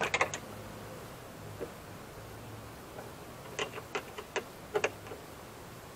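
A metal tool clicks and taps against a car door's metal panel.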